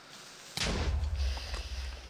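Ice shatters and crumbles.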